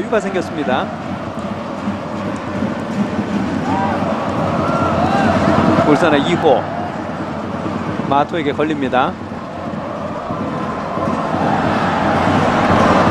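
A large stadium crowd roars steadily, growing louder toward the end.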